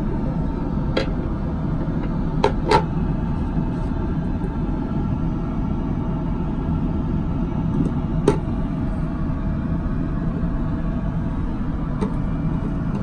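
Plastic bottles clink and knock against a metal tray.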